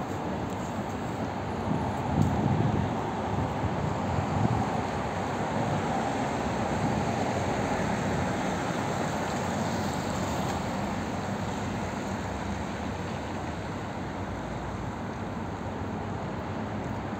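Steady city traffic rumbles along a wide street outdoors.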